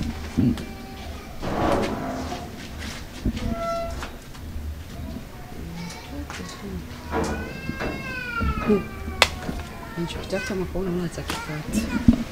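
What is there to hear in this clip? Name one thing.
An older woman talks nearby.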